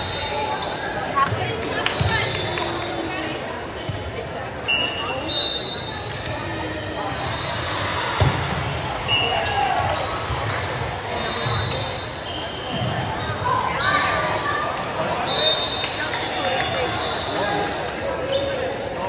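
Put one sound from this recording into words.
A crowd of young women and girls chatters in a large echoing gym.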